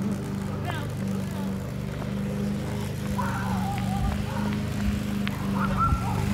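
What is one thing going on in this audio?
Stroller wheels rumble steadily over pavement close by.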